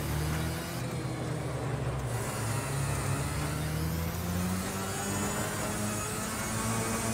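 A kart engine hums steadily, rising and falling in pitch.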